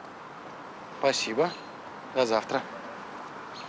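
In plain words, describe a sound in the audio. A young man talks on a phone nearby.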